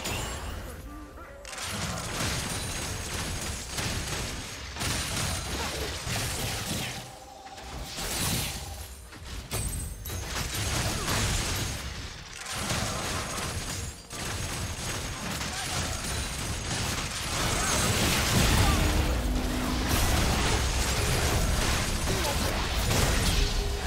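Fantasy battle sounds of spells and weapon hits clash and burst, growing louder toward the end.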